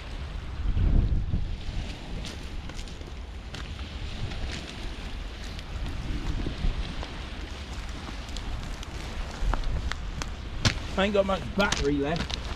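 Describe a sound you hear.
Footsteps crunch on pebbles close by.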